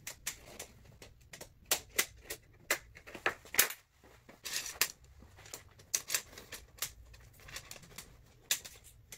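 Fibreglass tent pole sections clack and rattle together.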